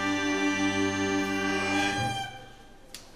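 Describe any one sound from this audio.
A small acoustic band holds a final chord, then stops.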